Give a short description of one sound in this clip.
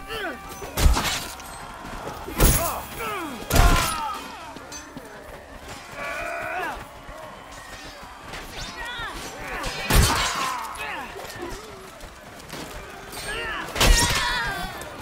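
Weapons strike with heavy, sudden thuds during a fight.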